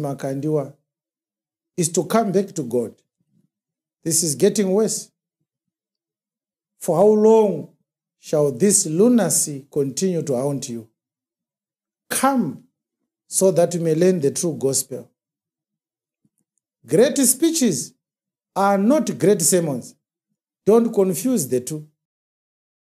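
A man speaks with animation into a close microphone, in bursts with pauses.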